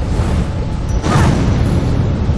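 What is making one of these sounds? A heavy thud sounds as someone lands from a jump.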